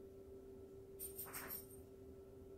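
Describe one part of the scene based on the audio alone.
A small cup clinks and rattles as a hand picks it up.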